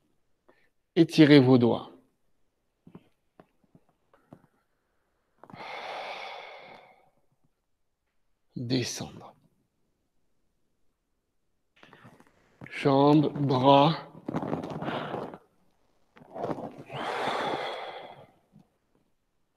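A man speaks calmly and slowly, close to a microphone.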